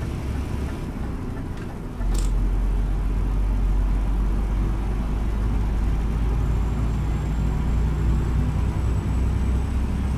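A truck engine rumbles low and steady from inside the cab.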